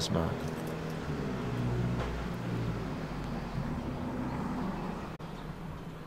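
An older man puffs on a cigar.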